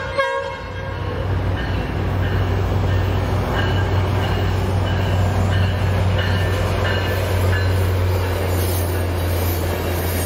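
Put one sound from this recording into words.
A passenger train rumbles past on the tracks, growing louder.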